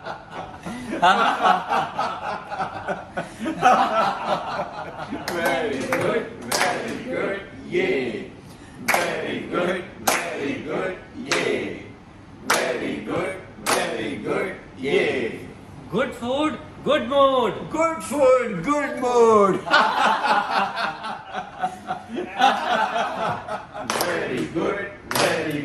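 Several men and women laugh heartily together.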